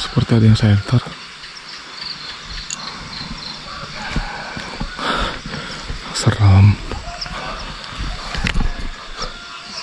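Footsteps crunch slowly on a dirt path through leaves and undergrowth.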